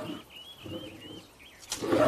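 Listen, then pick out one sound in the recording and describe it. A shoe steps on crunching wood shavings.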